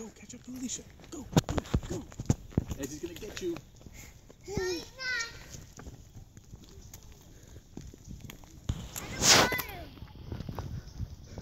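Small footsteps patter on a paved path.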